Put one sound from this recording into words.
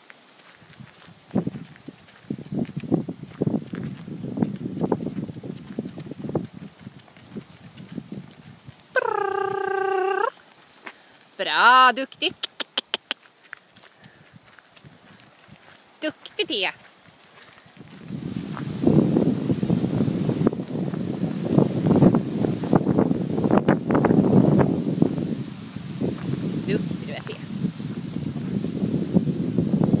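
Horses' hooves thud steadily on a dirt track.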